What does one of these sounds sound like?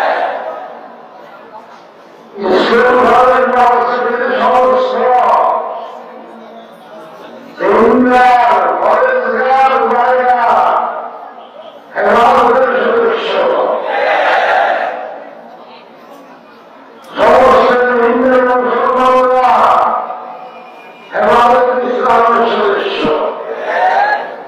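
An elderly man speaks forcefully into a microphone, heard through loudspeakers outdoors with echo.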